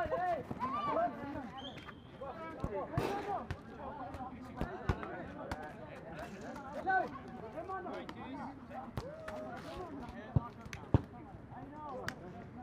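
Several young men talk and call out to each other outdoors.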